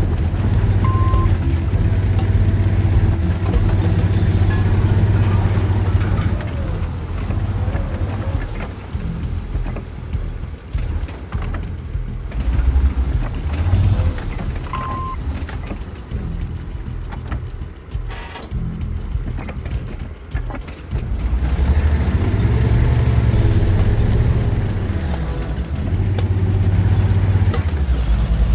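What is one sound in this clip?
A heavy tank engine rumbles loudly.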